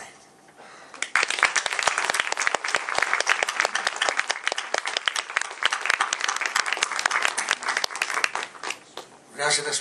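An audience applauds steadily.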